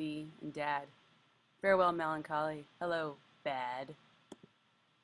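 A woman talks with animation, close to a microphone.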